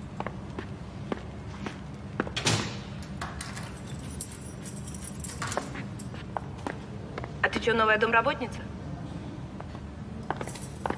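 Footsteps click on a hard floor.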